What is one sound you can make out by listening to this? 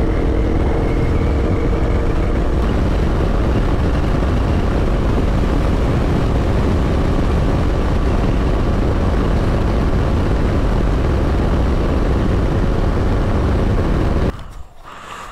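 Wind roars loudly past a motorcycle rider at speed.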